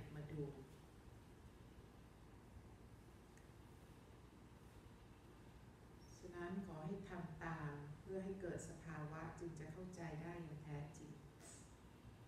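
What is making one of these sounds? A middle-aged woman speaks calmly through a microphone.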